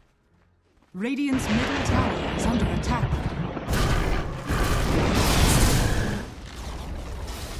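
Magic spell blasts crackle and whoosh loudly.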